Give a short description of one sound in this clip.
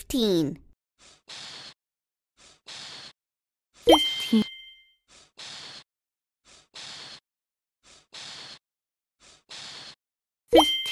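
Soft puffs of breath blow bubbles again and again in an even rhythm.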